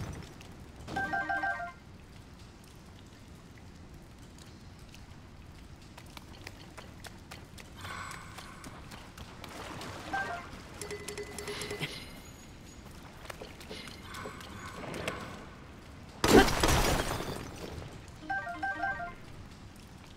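A short bright chime plays as items are collected.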